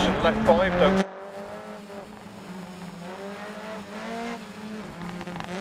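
A rally car engine drones in the distance.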